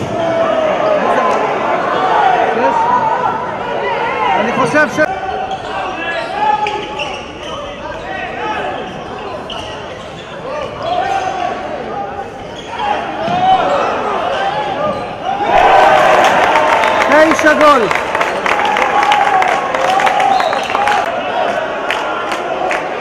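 Sports shoes squeak on a wooden court in a large echoing hall.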